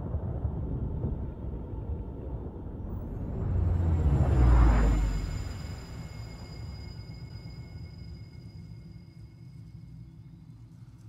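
A deep rushing whoosh swells to a loud burst and then slowly fades.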